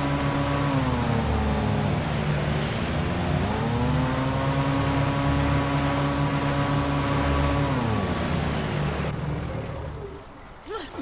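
Water rushes against a moving boat's hull.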